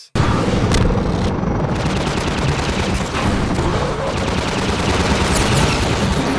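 Gunfire rattles loudly.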